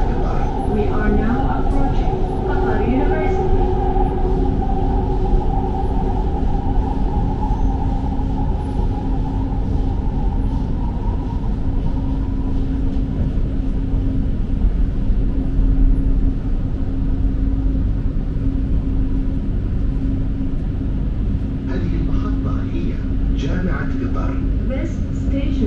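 A train's motor whines with a steady tone as it runs.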